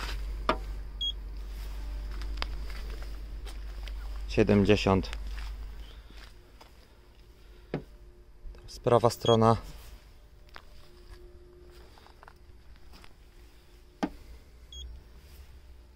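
A handheld gauge beeps briefly when pressed against a car panel.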